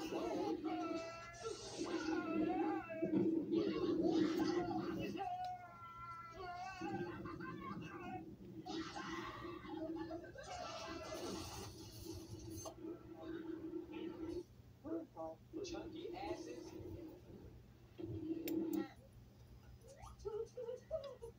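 Voices and music play from a television nearby.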